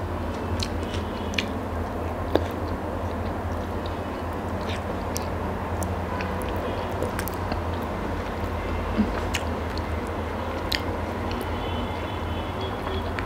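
A young woman chews food noisily and close up.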